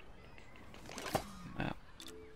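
A soft chime sounds as a menu opens.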